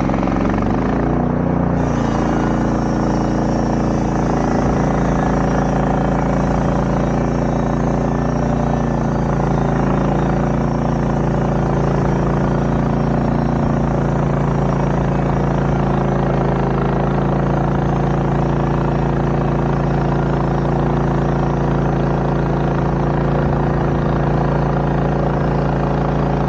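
A sawmill engine drones loudly and steadily close by.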